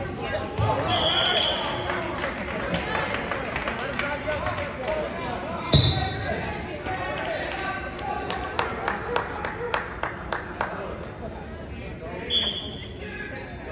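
A referee's whistle blows sharply several times.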